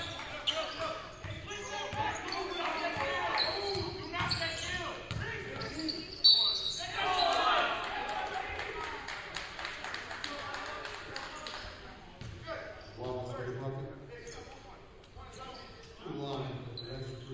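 Spectators and players shout and chatter in an echoing gym.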